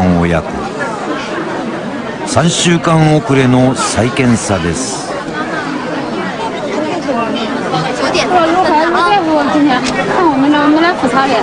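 A crowd of adults murmurs and chatters nearby.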